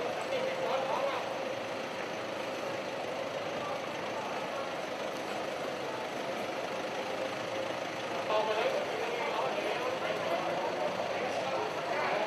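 A pickup truck engine idles and rolls slowly nearby.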